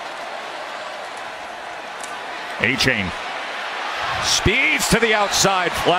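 A large stadium crowd roars and cheers, growing louder.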